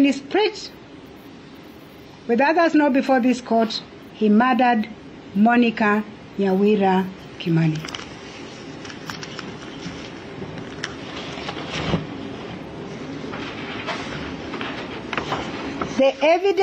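A woman speaks calmly and slowly into a microphone, with pauses.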